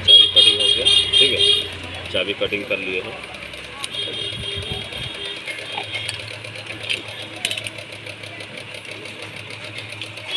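Small metal key parts click and clink together in hands.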